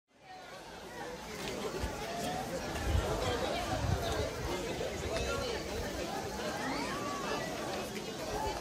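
A crowd of men and women chatter and call out nearby outdoors.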